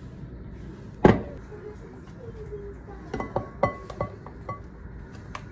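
Fruit pieces knock softly against a glass bowl.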